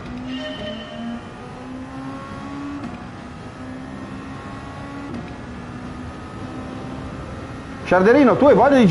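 A racing car engine revs and climbs through the gears.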